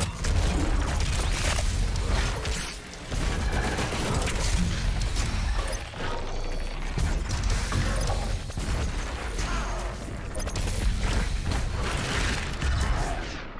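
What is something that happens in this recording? Monsters growl and screech.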